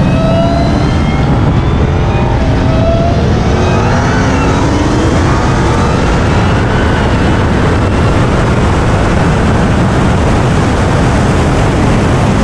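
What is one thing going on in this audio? A supercharged V8 muscle car roars at full throttle.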